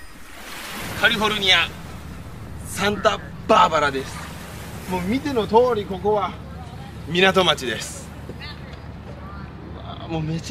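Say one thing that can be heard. A young man talks calmly and cheerfully outdoors, close by.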